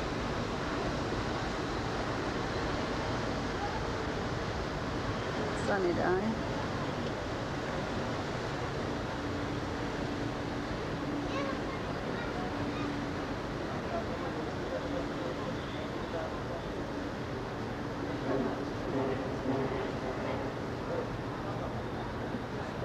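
Wake water churns and rushes behind a ship.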